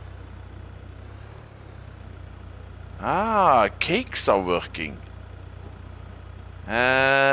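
A small vehicle's engine idles with a low steady hum.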